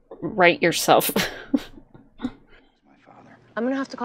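A young woman speaks briefly and with surprise.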